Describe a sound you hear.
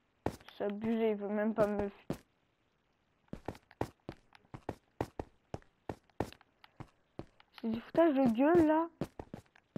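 Footsteps crunch steadily on stone.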